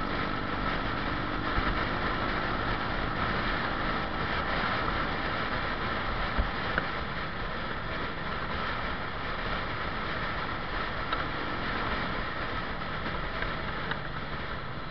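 A motorcycle engine hums steadily up close while riding.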